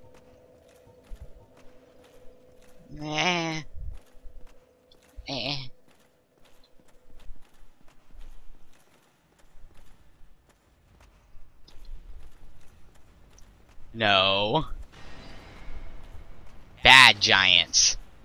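Footsteps clatter on a stone floor.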